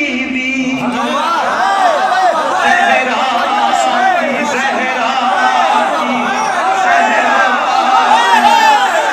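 A crowd of men chants along together.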